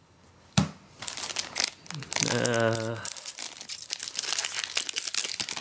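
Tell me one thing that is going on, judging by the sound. A foil wrapper crinkles and rustles as it is handled.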